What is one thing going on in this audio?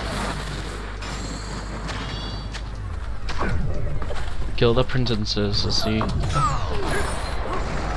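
Fiery blasts burst with loud bangs.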